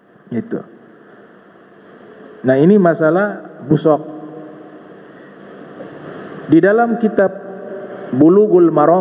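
A man preaches with animation into a microphone, heard through a loudspeaker in a reverberant hall.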